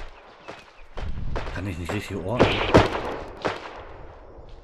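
A man speaks calmly into a headset microphone.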